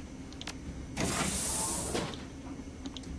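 A heavy door unlocks and hisses open.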